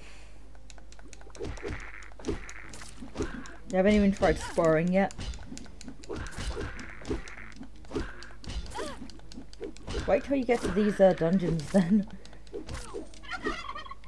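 A sword swishes and strikes in quick hits.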